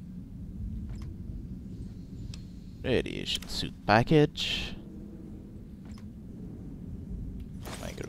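A metal footlocker clicks open.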